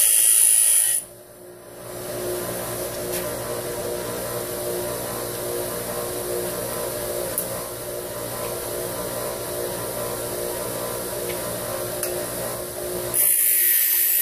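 A bench grinder motor hums steadily.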